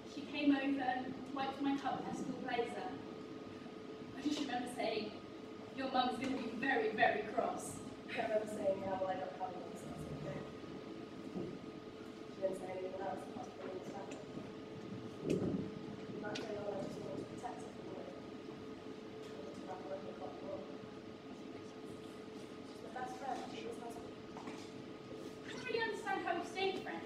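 A young woman speaks with expression nearby.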